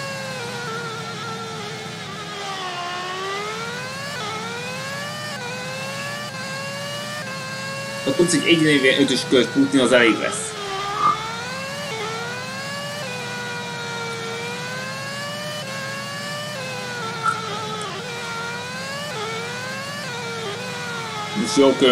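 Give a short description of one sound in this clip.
A racing car engine whines steadily, rising and falling in pitch as it speeds up and slows down.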